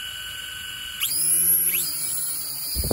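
A small drone's motors rev up sharply as the drone lifts off.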